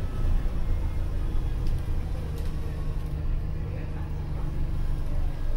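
A bus engine rumbles low and steady from inside the cabin.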